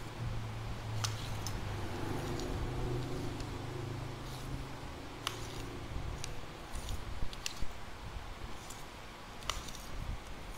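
A fishing rod clicks and taps softly as it is handled.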